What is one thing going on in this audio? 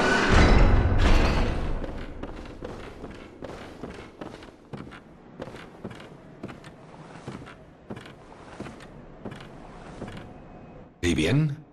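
Footsteps thud across creaking wooden boards.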